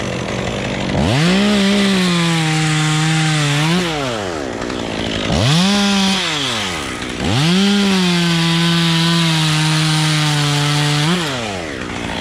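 A chainsaw revs loudly and cuts into wood in bursts.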